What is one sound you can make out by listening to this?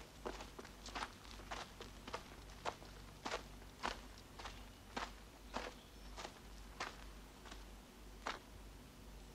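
Boots crunch steadily on rocky ground as soldiers walk.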